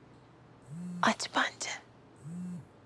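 A young woman giggles softly close by.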